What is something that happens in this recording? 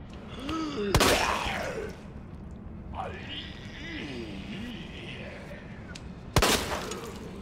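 A pistol fires two loud shots.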